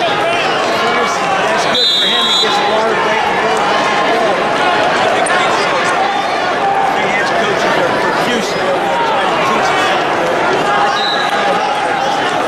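A large crowd murmurs and chatters in a large echoing arena.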